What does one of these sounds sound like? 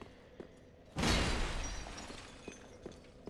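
Sparks burst with a crackling blast.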